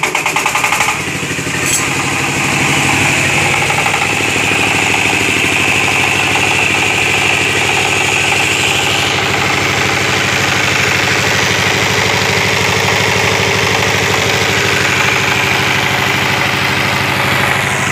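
A diesel engine runs with a steady, loud rumble.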